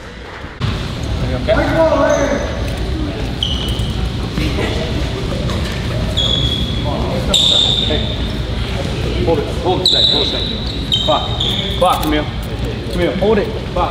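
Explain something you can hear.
Young men call out to one another in a large echoing hall.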